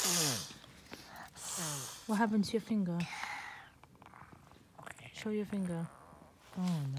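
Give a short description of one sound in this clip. A young child talks in short, soft phrases close by.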